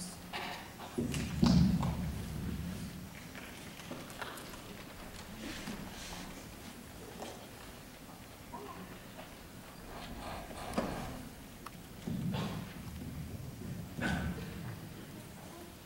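A piano plays deep, ringing chords.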